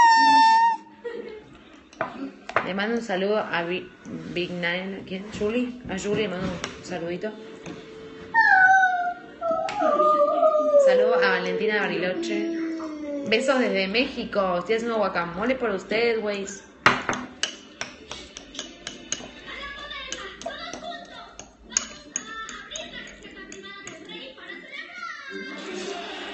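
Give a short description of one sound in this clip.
A fork scrapes and mashes food in a glass bowl.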